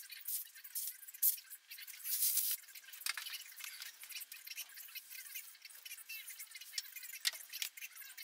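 A rubber hose rubs and slaps as it is handled.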